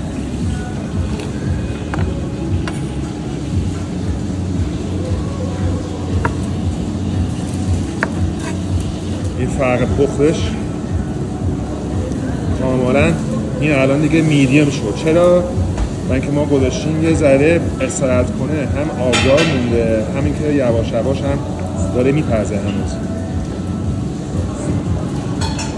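A knife slices through meat on a cutting board.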